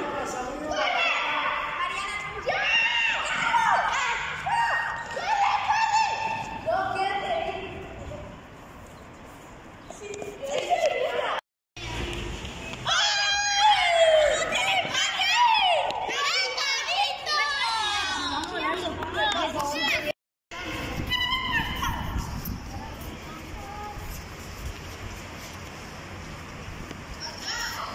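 Children talk and shout excitedly close by.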